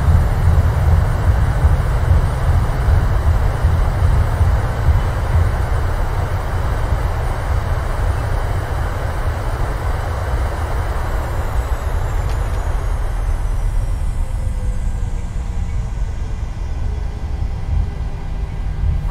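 Jet engines roar loudly and slowly wind down.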